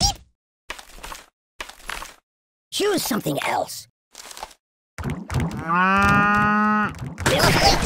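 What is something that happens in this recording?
Cartoonish game sound effects play in short bursts.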